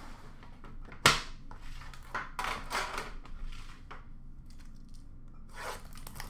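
Card packs rustle and crinkle in hands.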